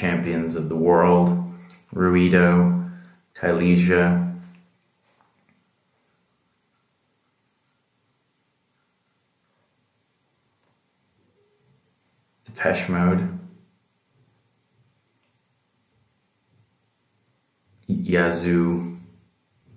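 A man speaks calmly and close by, in short bursts with long pauses.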